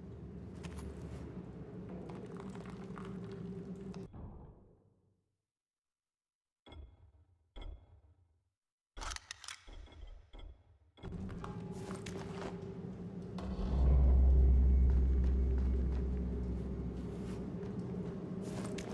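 A low, steady drone echoes through a stone hall.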